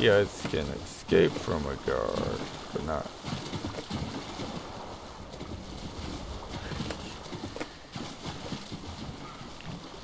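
Water sloshes and ripples as a swimmer paddles.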